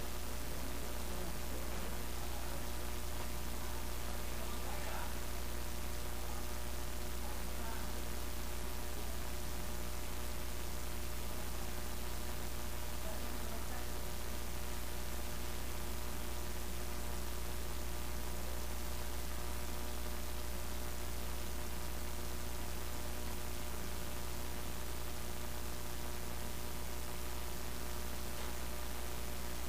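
People talk quietly in a large room.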